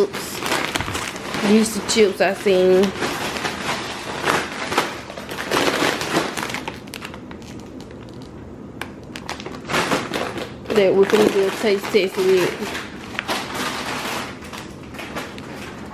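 A crisp plastic snack bag crinkles and rustles as it is handled up close.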